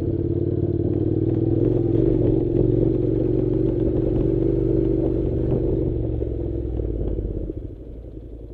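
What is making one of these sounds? A motorcycle engine rumbles as the bike rides over a rough dirt track.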